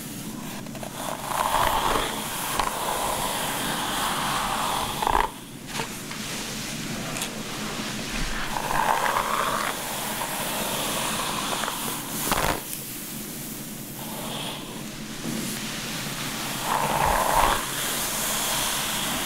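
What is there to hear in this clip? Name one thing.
Fingers rustle through hair.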